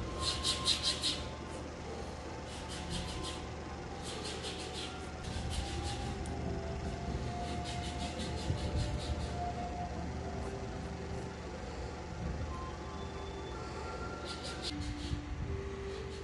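Nail clippers snip and click in short bursts close by.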